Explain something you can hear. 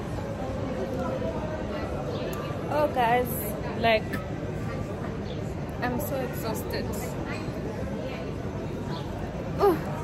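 A young woman speaks close by, with animation.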